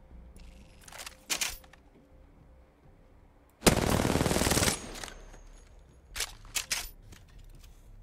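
A gun clicks and rattles as it is handled.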